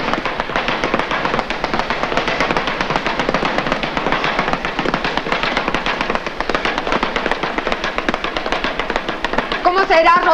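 A speed bag rattles rapidly under quick punches.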